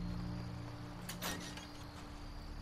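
A metal door clicks and creaks open.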